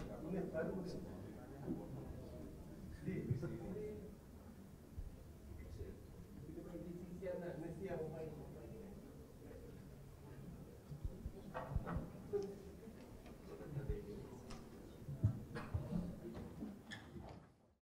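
Men and women chatter and murmur nearby in a room.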